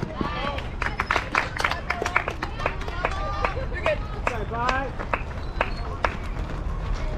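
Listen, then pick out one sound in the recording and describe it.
Young players shout and cheer outdoors.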